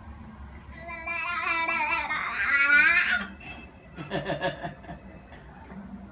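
An elderly woman talks playfully and sing-song to a baby close by.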